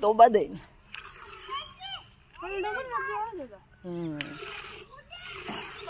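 Milk squirts in streams into a metal pail.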